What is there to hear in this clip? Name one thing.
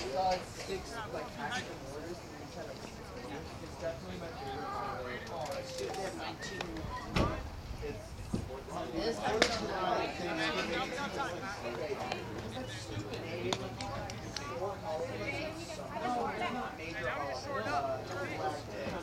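Men call out and chatter across an open outdoor field.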